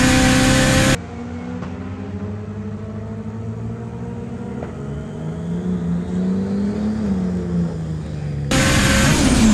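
A drag car engine revs and roars down the track.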